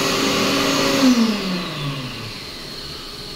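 A hand dryer blows loudly, then winds down with a falling whine.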